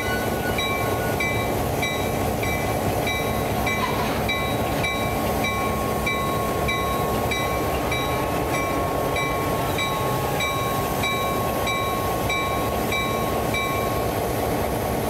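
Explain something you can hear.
A diesel locomotive engine rumbles steadily up close.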